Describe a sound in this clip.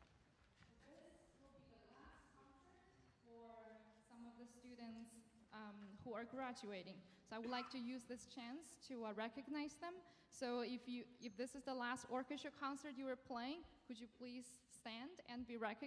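A young woman speaks calmly into a microphone over loudspeakers in a large hall.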